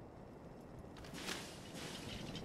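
A rifle clatters as it is raised.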